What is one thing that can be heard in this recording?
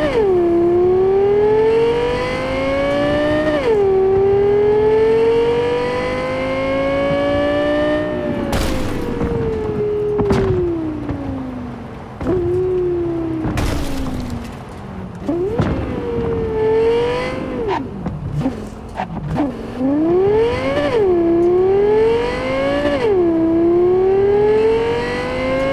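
A car engine revs high, rising through the gears and dropping between shifts.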